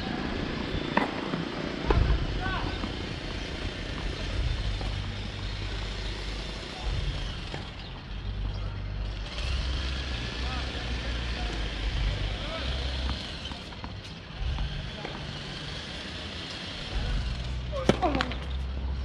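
Tennis balls are struck with rackets, with sharp pops.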